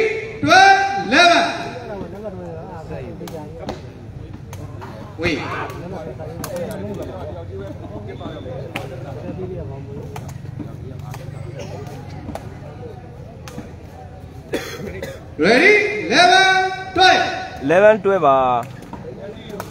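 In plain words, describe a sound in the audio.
A crowd of spectators shouts and cheers loudly outdoors.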